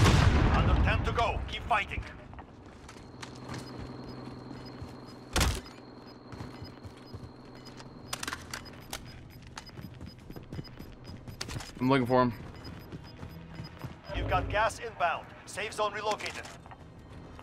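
An adult man talks with animation through a microphone.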